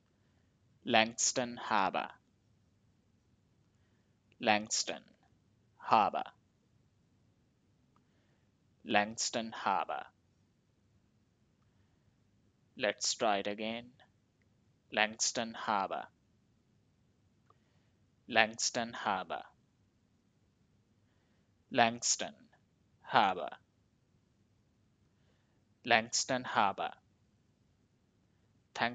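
A young man speaks calmly and clearly into a close microphone, in short phrases with pauses.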